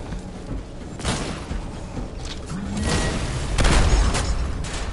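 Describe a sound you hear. A large creature slams down with heavy booming thuds.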